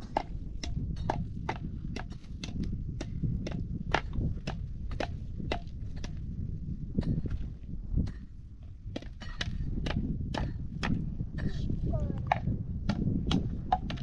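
A hoe strikes and scrapes dry soil in a steady rhythm.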